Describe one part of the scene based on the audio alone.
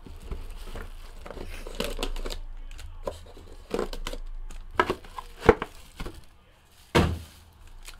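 Cardboard box flaps rustle and scrape as a box is opened.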